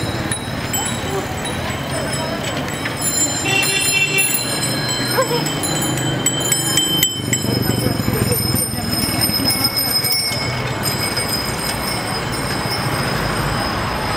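Bicycles roll past on a paved street.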